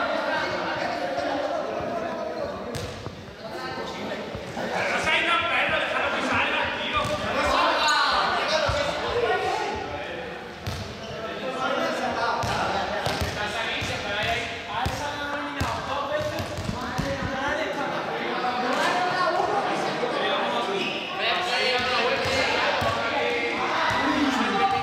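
Young men and women call out and chatter in a large echoing hall.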